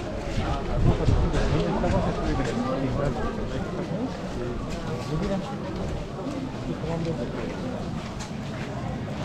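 Many footsteps shuffle on a paved road.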